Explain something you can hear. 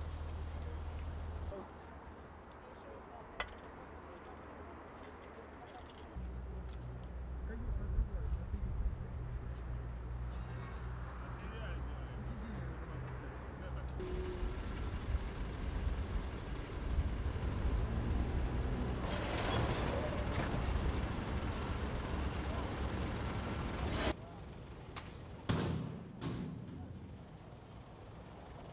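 A shovel scrapes into sand.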